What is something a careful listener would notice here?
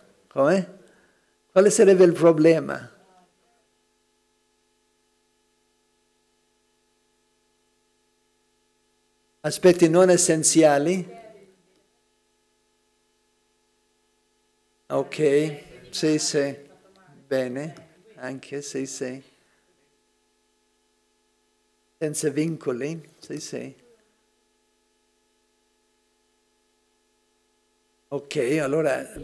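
An elderly man speaks calmly and with good humour into a microphone, in bursts with long pauses between.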